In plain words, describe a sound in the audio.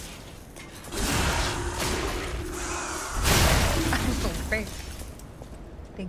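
Metal clangs and grinds loudly in a fight.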